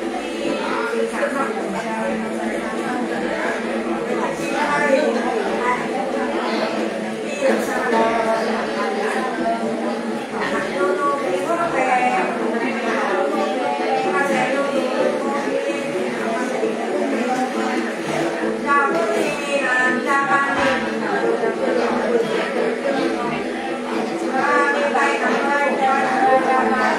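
An elderly woman sings in a chanting voice close by.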